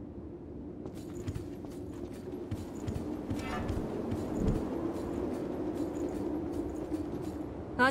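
Quick footsteps run across a hard stone floor.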